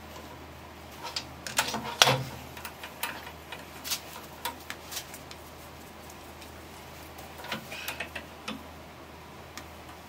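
Metal parts clink and knock sharply.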